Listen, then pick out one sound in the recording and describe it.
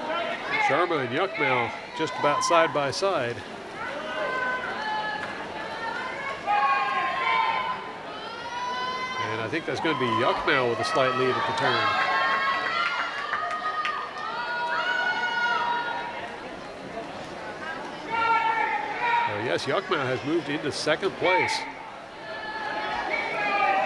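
A crowd of young spectators cheers and shouts loudly in an echoing hall.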